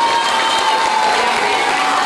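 A woman claps her hands.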